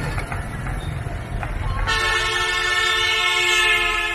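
A bus rumbles past close by.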